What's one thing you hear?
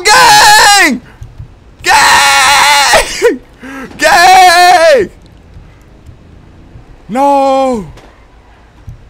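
A young man shouts loudly and excitedly into a close microphone.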